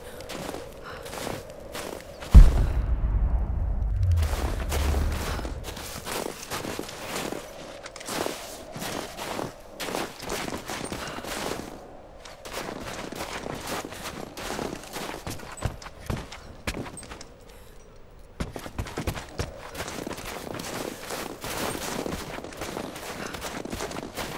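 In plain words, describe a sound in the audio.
Footsteps crunch through snow at a steady pace.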